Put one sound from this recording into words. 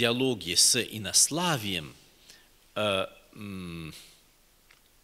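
A middle-aged man speaks calmly through a microphone.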